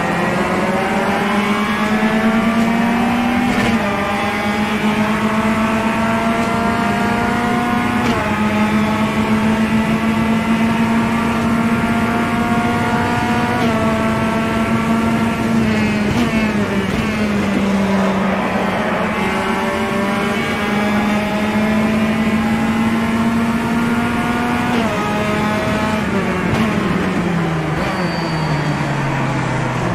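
A four-cylinder touring car engine in a racing game revs up and down through gear changes, heard through speakers.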